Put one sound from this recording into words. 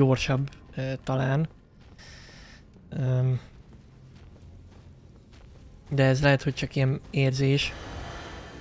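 A young man talks loudly and with animation into a close microphone.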